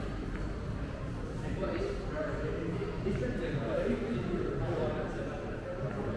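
A man's footsteps tap on a hard floor nearby.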